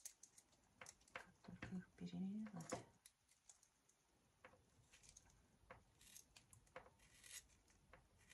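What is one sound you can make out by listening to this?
Pliers click and grip a metal fitting.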